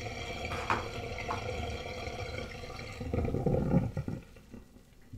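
Water drains and gurgles in a sink.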